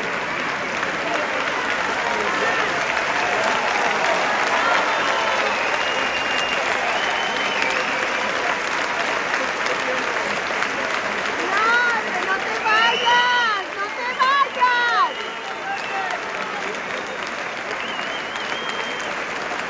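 A large audience applauds and cheers loudly in a big hall.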